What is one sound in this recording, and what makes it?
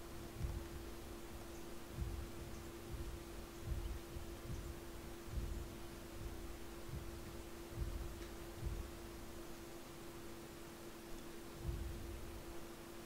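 Small footsteps patter and rustle through tall grass.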